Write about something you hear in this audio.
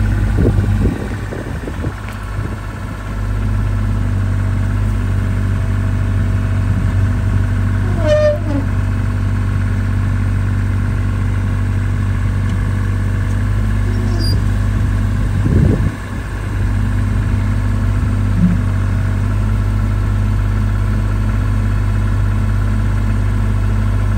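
A small diesel engine hums steadily close by.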